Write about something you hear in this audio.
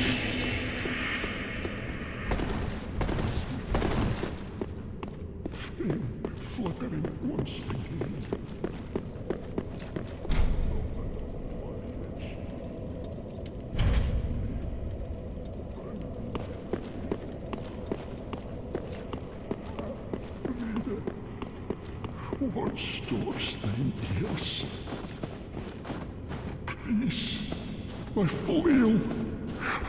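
Armoured footsteps clank steadily on a stone floor.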